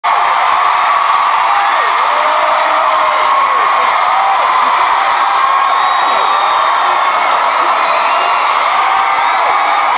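A large crowd screams and cheers loudly and steadily, many voices overlapping.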